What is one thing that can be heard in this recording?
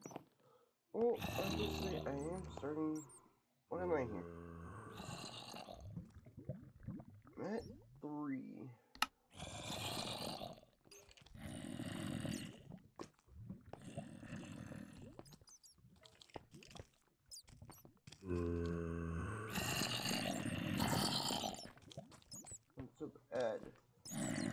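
A young man talks with animation into a headset microphone, heard close up.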